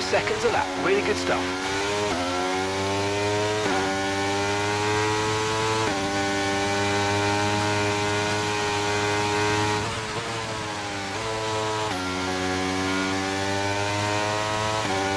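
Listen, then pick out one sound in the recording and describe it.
A racing car engine screams loudly, its pitch climbing and then dropping sharply at each gear change.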